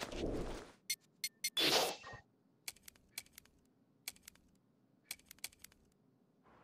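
Short electronic menu clicks tick in quick succession.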